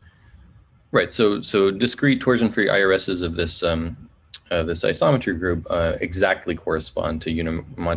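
A man speaks calmly into a close microphone, as if on an online call.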